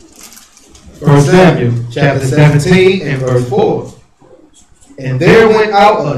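A young man reads aloud loudly into a microphone.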